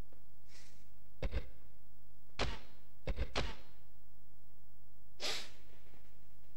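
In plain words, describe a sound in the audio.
Short electronic menu blips sound now and then.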